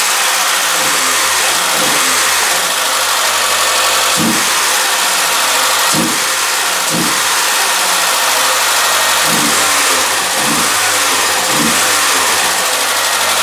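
A car engine revs up again and again in short bursts.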